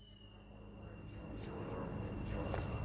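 Footsteps tap on a hard floor in a large echoing hall.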